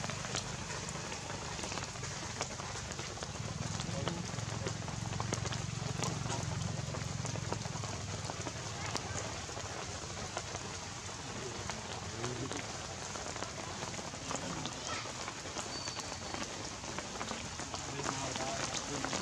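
Monkeys patter on dirt ground.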